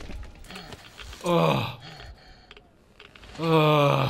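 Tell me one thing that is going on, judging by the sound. A creature snarls and growls up close.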